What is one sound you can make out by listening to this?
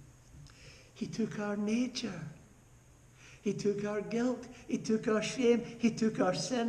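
An elderly man speaks with animation, close to a microphone.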